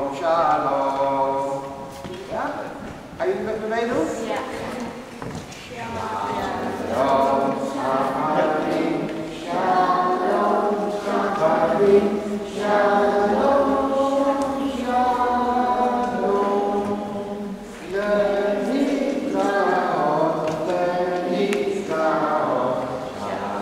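A man sings a chant in a reverberant hall.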